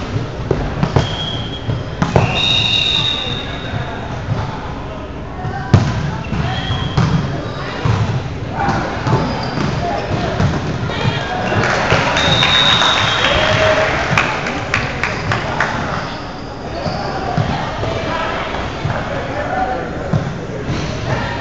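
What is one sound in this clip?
A volleyball is hit with hard slaps.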